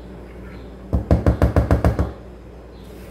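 A spatula taps rapidly against a plastic bowl.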